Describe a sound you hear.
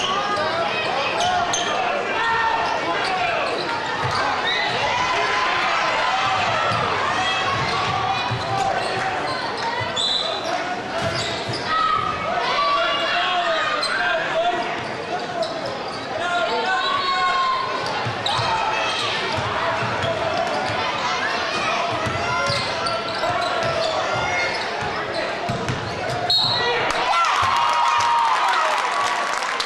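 A large crowd cheers and chatters in an echoing gym.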